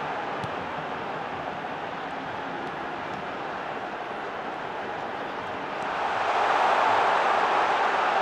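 A large stadium crowd roars steadily, swelling louder near the end.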